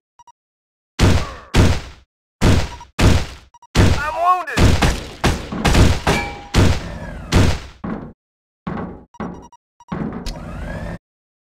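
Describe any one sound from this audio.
Gunshots ring out in sharp, rapid bursts.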